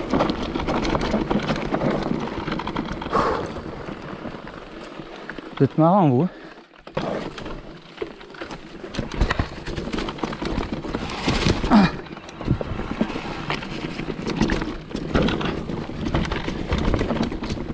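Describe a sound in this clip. A bicycle rattles and clatters over bumps and roots.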